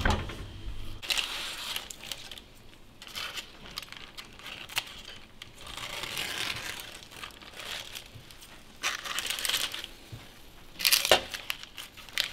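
Metal tongs scrape and clatter on a baking tray.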